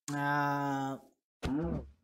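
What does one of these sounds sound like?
A cow moos.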